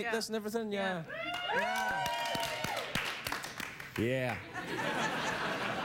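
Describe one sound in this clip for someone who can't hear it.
A studio audience laughs and cheers.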